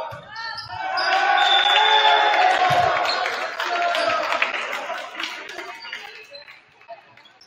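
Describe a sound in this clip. Spectators cheer and clap.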